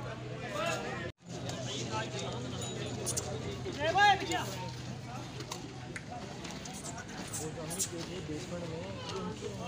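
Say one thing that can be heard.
Several men talk and call out loudly nearby.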